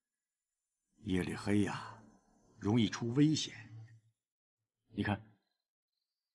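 A middle-aged man speaks calmly and closely.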